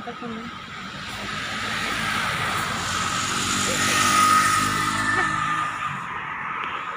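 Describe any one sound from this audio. A bus drives past on a road.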